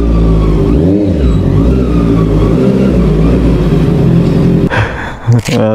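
A motorcycle engine idles with a steady low rumble.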